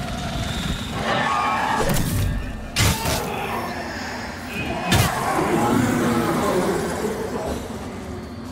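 A blade swishes and strikes a foe with heavy thuds.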